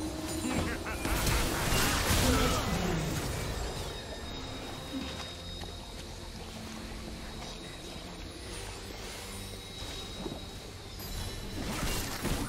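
Magic blasts and impacts crackle and whoosh in a video game battle.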